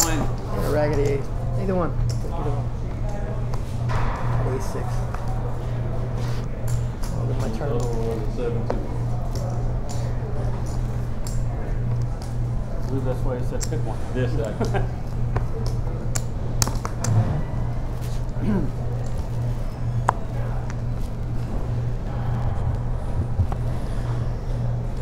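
Poker chips click and clatter.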